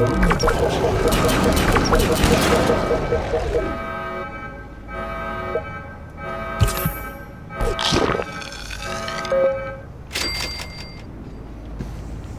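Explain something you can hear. Short electronic blips sound as menus open and close.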